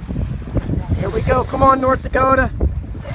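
A man speaks loudly nearby over the wind.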